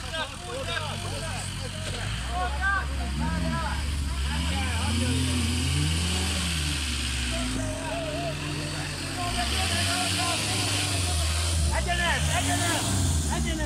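Several men talk and shout excitedly nearby, outdoors.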